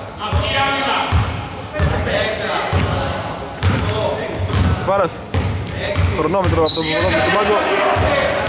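Men call out to each other across the hall.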